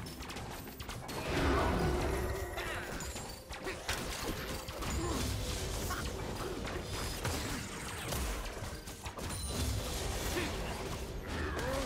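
Game sound effects of spells and weapon hits crackle and clash throughout.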